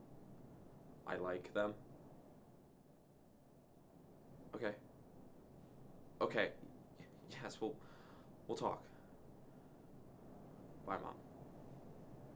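A young man speaks in short bursts, close by.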